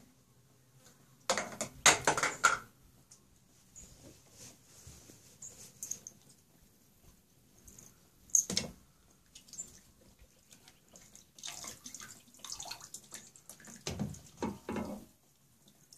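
Water splashes and trickles as a toddler plays in a water table.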